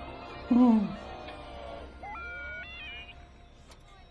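A small robot beeps and whistles.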